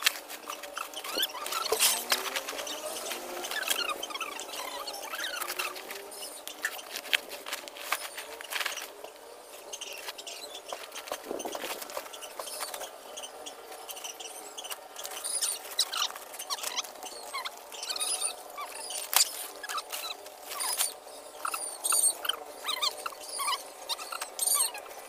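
Dry sticks crackle and clatter as they are handled.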